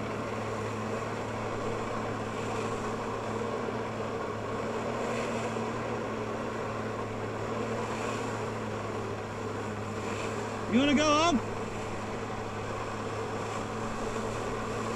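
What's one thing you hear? Jets of water roar and spray steadily.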